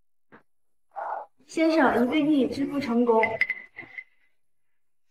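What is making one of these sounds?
A young woman speaks calmly and politely.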